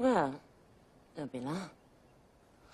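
A woman speaks calmly and briefly nearby.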